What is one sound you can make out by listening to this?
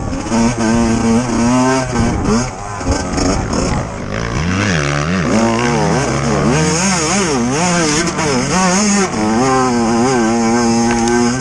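A dirt bike engine revs up and down loudly close by.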